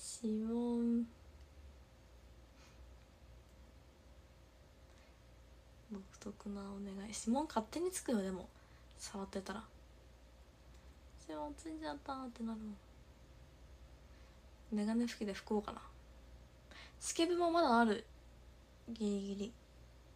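A young woman speaks calmly and closely into a microphone, in short bursts with pauses.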